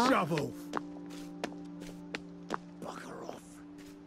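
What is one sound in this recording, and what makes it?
Footsteps tread steadily along a path.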